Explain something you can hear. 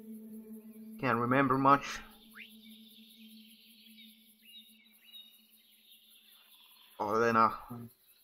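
A game creature lets out a low, pitched grunt.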